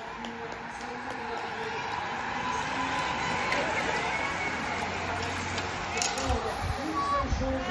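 A pack of racing bicycles whirs past, growing louder as it nears.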